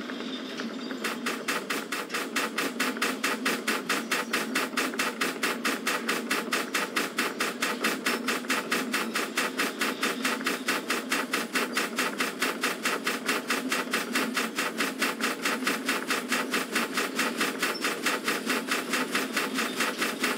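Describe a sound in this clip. A steam locomotive chuffs in a fast, even rhythm.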